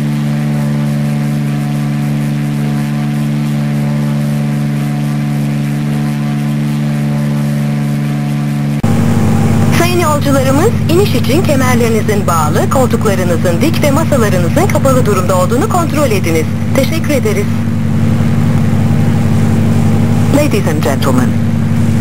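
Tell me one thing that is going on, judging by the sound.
A propeller aircraft engine drones steadily.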